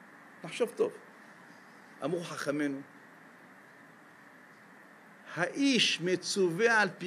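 An elderly man speaks with animation through a microphone, in short bursts with pauses.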